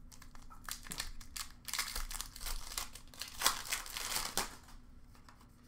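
A foil card pack crinkles and tears open in close hands.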